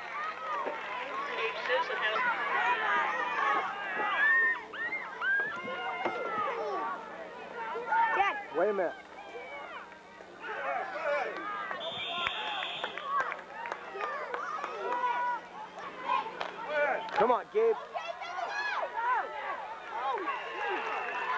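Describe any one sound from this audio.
Young boys shout and call out.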